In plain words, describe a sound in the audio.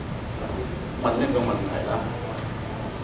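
A man speaks briefly into a microphone in a large echoing hall.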